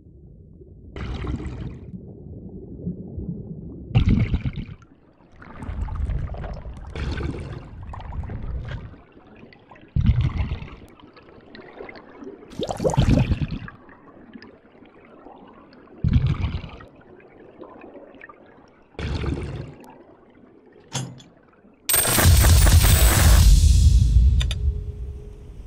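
Bubbles burble underwater in short bursts.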